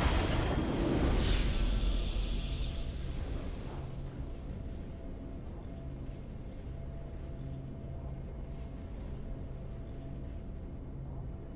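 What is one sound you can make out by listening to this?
A game victory fanfare swells and then quietly lingers.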